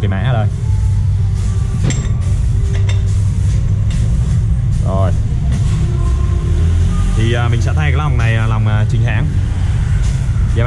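Metal engine parts clink as they are handled.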